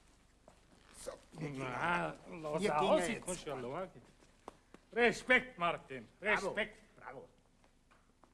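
A man speaks loudly with feeling, close by.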